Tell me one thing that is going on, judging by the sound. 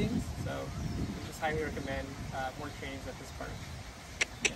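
A young man speaks calmly outdoors.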